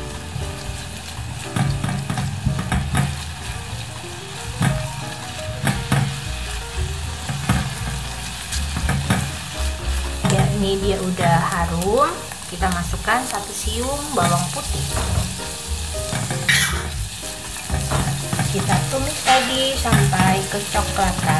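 A spatula scrapes against a metal pan.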